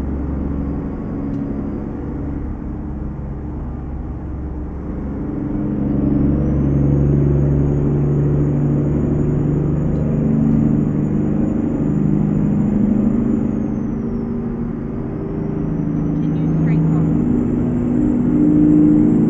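A truck engine rumbles steadily as it drives, its pitch rising and falling.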